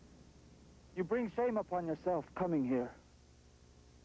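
A man speaks calmly up close.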